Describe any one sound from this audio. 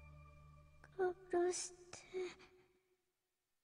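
A young girl gasps and whispers fearfully, close by.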